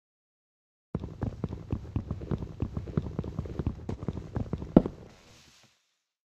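A pickaxe chips rapidly at a wooden block.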